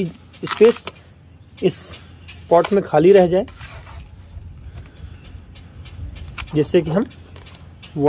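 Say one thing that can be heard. Loose soil pours and patters into a pot.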